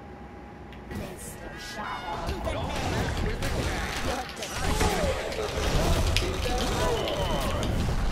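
Weapons fire and blasts burst in a loud fight.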